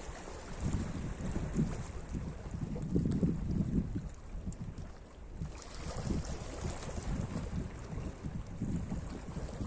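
Wind blows outdoors, rumbling low.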